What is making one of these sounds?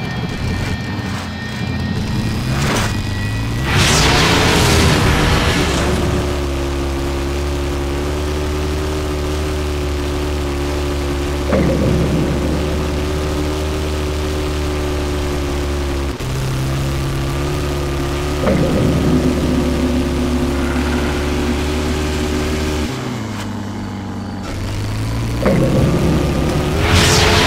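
A buggy engine roars and revs steadily as it drives.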